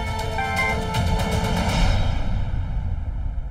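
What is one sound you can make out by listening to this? A phone rings with a melodic ringtone.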